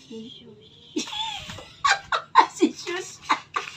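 A middle-aged woman laughs loudly up close.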